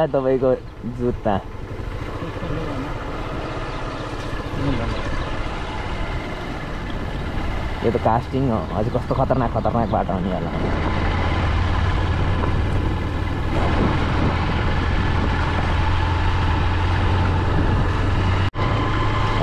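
Tyres roll and crunch over a dirt road.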